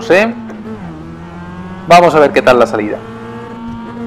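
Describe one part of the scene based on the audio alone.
A race car engine revs loudly in short bursts.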